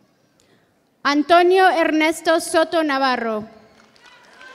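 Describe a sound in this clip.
A woman speaks loudly and clearly through a loudspeaker in a large echoing hall.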